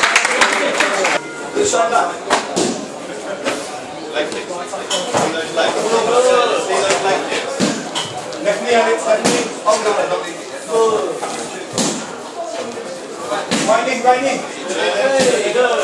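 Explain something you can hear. A crowd of people chatters in an echoing hall.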